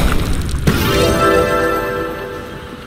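A cheerful jingle plays as a level is won.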